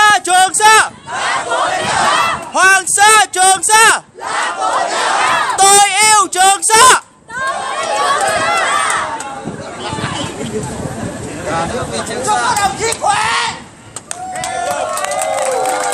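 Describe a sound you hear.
A large group of men and women chants loudly in short, rhythmic bursts in unison.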